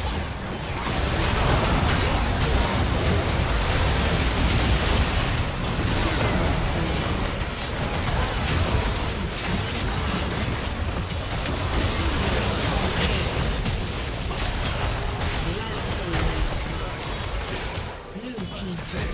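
Game combat effects crash and crackle in a dense, busy mix.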